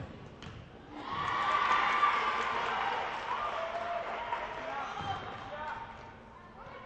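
Spectators cheer and shout from the side.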